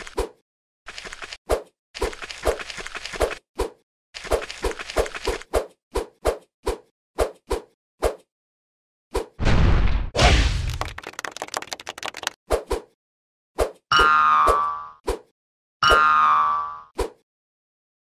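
Short electronic game blips sound as a character jumps.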